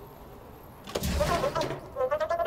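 A metal door bangs open.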